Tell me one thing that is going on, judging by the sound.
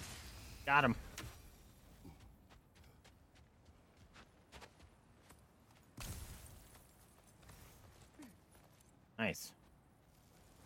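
A young man speaks briefly into a microphone.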